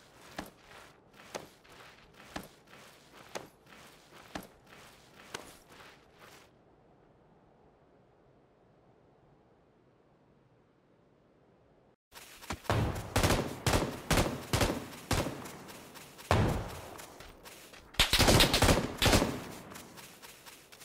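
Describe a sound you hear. Footsteps crunch rhythmically on dry ground.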